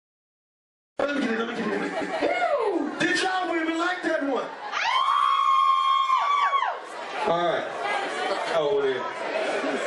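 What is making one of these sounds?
A young man raps loudly into a microphone.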